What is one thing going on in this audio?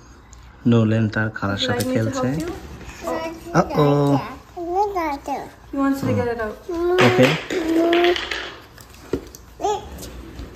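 A toddler babbles and makes little vocal sounds.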